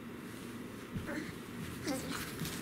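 A baby girl babbles softly nearby.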